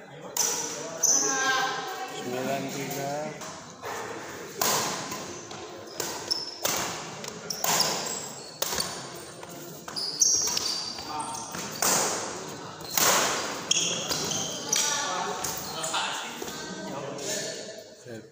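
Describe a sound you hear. Shoes squeak sharply on a wooden court.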